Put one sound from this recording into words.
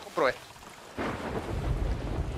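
Waves wash softly onto a sandy shore.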